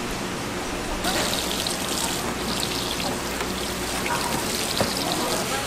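Water sprays from a hose with a steady hiss.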